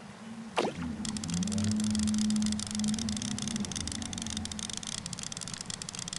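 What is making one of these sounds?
Water splashes and churns as a hooked fish thrashes.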